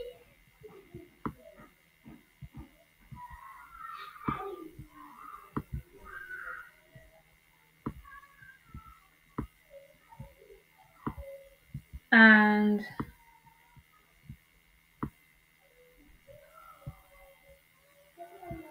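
A woman speaks calmly and quietly into a microphone.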